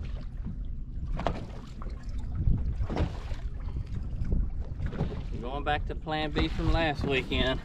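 Wind blows across open water, buffeting the microphone.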